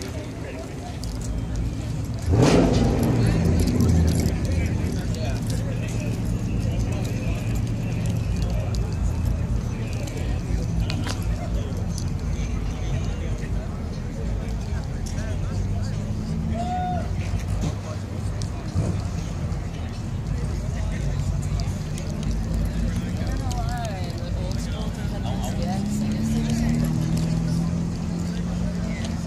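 Car engines idle with a low, steady rumble nearby.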